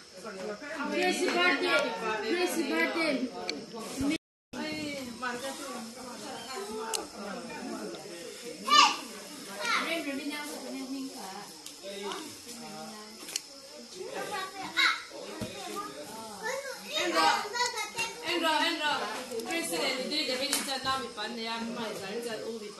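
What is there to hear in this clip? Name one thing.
Young children chatter and call out close by.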